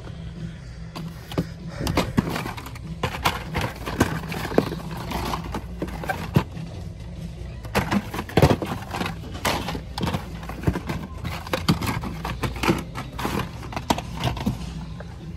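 Plastic toy packages rustle and clatter as a hand sorts through them.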